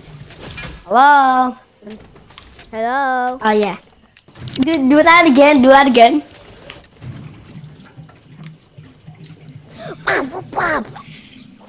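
A child speaks excitedly into a microphone.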